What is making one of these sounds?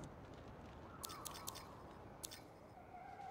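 Menu selection clicks tick softly.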